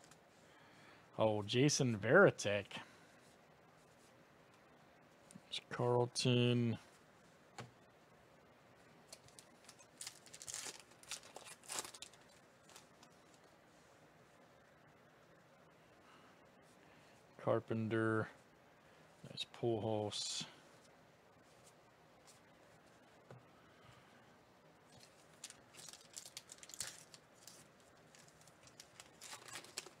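Trading cards slide and flick against each other in close hands.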